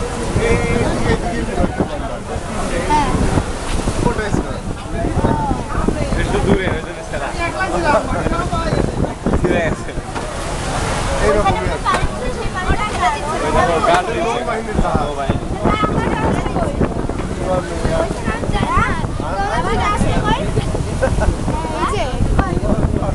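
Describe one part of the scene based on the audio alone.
Water churns and rushes in a ferry's wake.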